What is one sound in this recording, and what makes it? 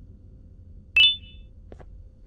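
A short chime rings as an item is picked up.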